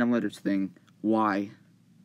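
Soft taps sound on a touchscreen keyboard.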